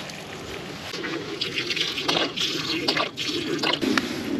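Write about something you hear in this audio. Water pours from a squeeze bottle into a pot of vegetables.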